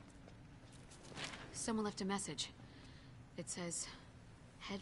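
A young woman reads out a short message calmly, close by.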